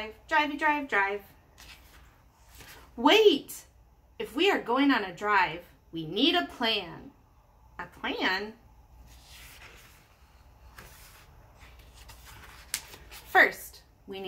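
A woman reads aloud close by, with lively changing voices.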